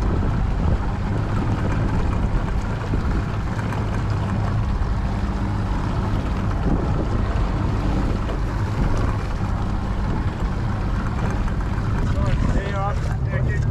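Water rushes and churns behind a moving boat.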